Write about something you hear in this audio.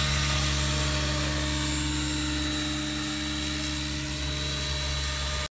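A model helicopter's engine whines steadily with a loud buzzing drone.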